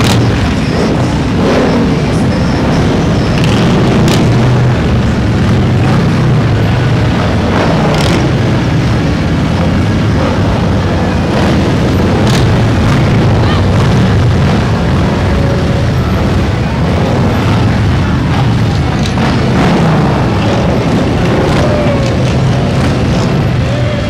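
Motorcycle engines rev up now and then.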